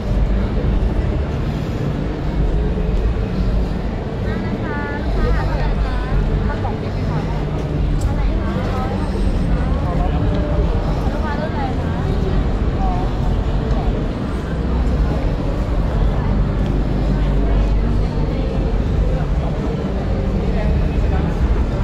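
A crowd of people chatters all around, close by.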